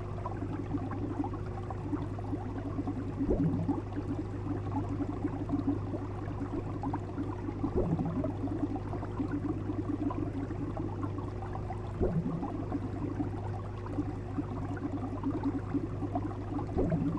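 Water bubbles and gurgles steadily in an aquarium.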